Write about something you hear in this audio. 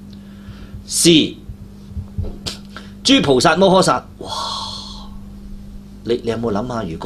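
A middle-aged man speaks with feeling into a close microphone, pausing between phrases.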